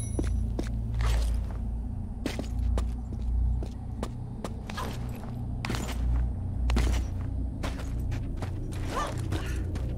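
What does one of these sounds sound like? Footsteps patter on stone.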